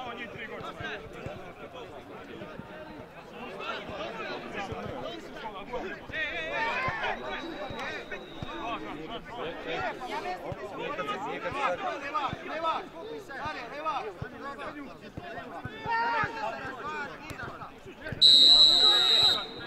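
Several young players and spectators shout and call out across an open field.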